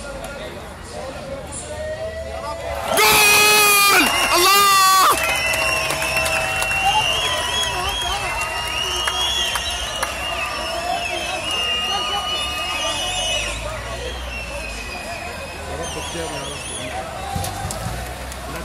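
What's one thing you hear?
A large outdoor crowd murmurs, whistles and cheers.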